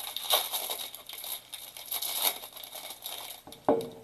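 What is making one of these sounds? Cards slide and rustle against each other.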